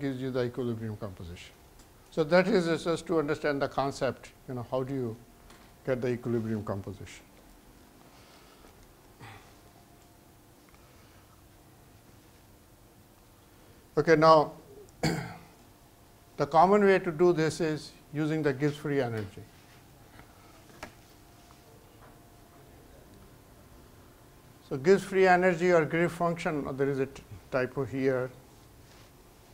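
A middle-aged man lectures calmly through a microphone, with pauses.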